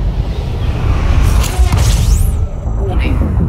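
A loud whooshing roar surges and falls away.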